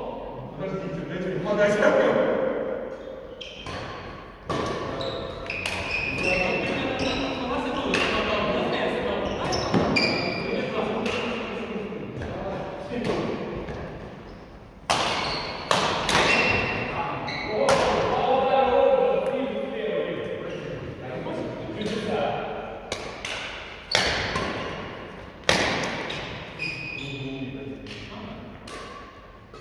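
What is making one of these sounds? Shuttlecocks are struck with sharp pops of rackets, in a large echoing hall.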